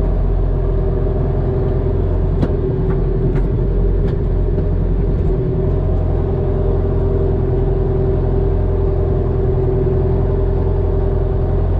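A tractor's diesel engine runs steadily, heard from inside the cab.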